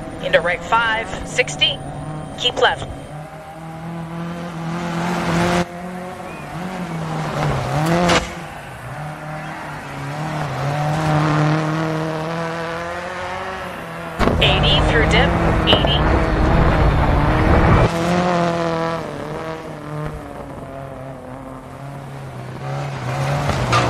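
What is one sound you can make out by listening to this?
Gravel sprays and crunches under a car's tyres.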